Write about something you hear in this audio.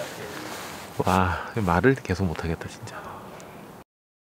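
A man speaks quietly, close by.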